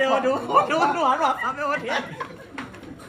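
A woman sings loudly and joyfully close by.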